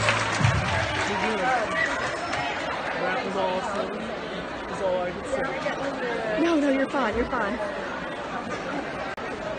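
A woman nearby talks excitedly.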